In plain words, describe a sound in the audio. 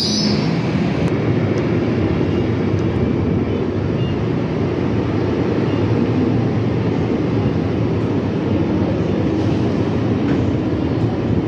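A second train rolls slowly and rumbles close by.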